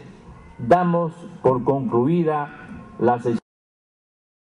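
An elderly man speaks formally into a microphone.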